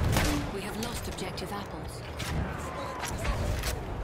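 A player reloads a pistol with metallic clicks.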